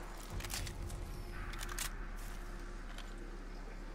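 Footsteps rustle through dry leaves.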